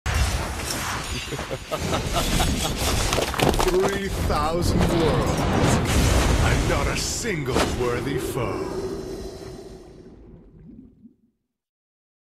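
Fiery whooshes and blasts roar loudly, then fade away.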